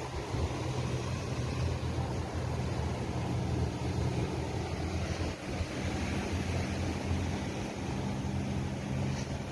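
Waves wash and break against rocks.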